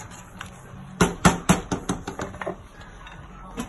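A wooden spoon knocks against the rim of a metal pot.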